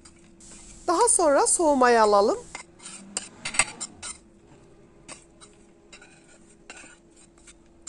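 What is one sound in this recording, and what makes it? Dry crumbs pour and patter onto a plate.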